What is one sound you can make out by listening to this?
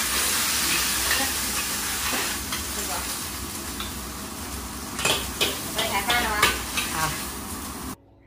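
A metal spatula scrapes against a wok.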